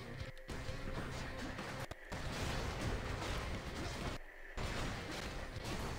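Video game explosions burst and boom.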